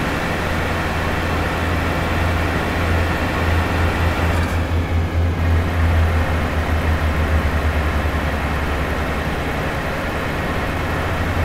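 Tyres roll over the road with a steady hum.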